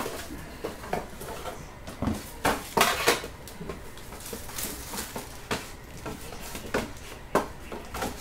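Plastic wrap crinkles and rustles as it is handled.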